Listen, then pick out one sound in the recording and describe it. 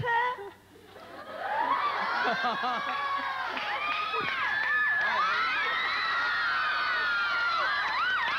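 A studio audience cheers and shouts loudly.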